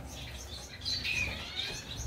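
Dry straw rustles under a hand.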